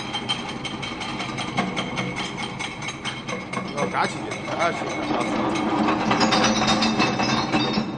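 A crusher machine roars steadily.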